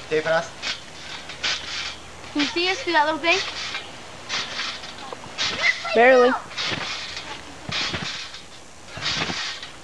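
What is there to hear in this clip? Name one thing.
A trampoline mat creaks and thumps as a young man bounces on it.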